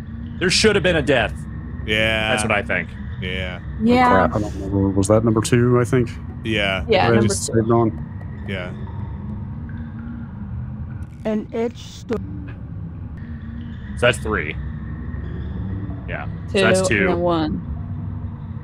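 Men talk with animation over online call microphones.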